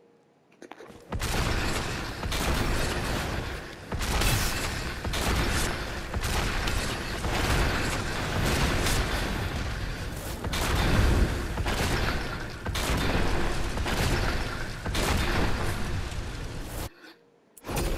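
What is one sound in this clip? Magic blasts and explosions crash and roar in quick bursts.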